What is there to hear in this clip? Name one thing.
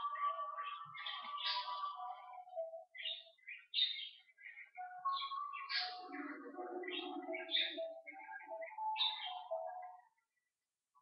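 An elderly man talks calmly close to a microphone.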